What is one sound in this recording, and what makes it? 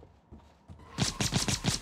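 A gun fires in quick repeated shots.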